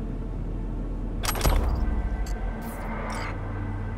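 A short game chime sounds as an item is picked up.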